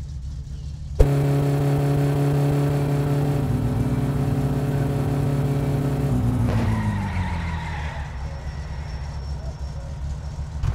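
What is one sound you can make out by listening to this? A car engine starts with a loud burst and runs with a steady hum.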